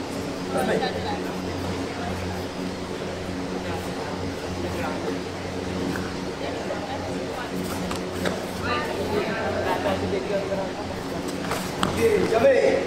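Bare feet thump and slide on a padded mat.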